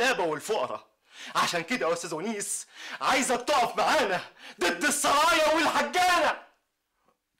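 A man shouts angrily close by.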